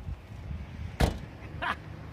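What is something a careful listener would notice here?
A car's hatch slams shut.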